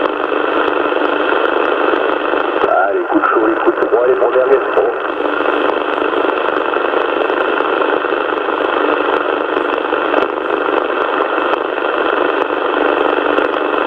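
A radio receiver hisses with steady static.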